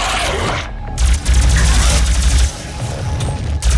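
A heavy gun fires in loud bursts.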